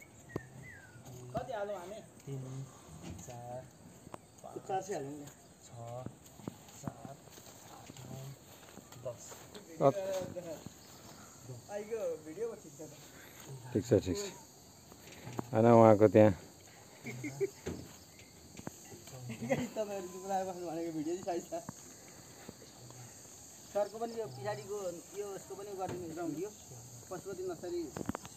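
Men talk to each other outdoors, close by.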